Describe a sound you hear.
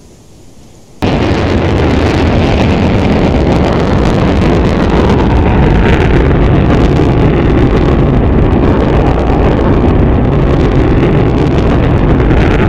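A jet roars loudly overhead.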